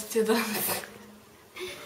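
A young woman speaks briefly and cheerfully nearby.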